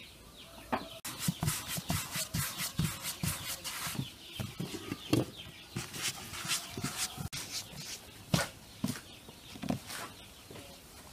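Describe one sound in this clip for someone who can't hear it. Dough thumps and pats on a wooden board.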